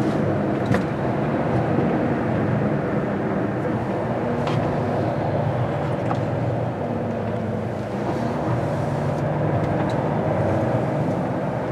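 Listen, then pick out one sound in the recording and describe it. Tyres hiss on wet pavement.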